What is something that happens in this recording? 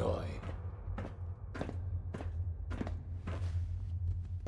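Footsteps thud steadily on a hollow floor.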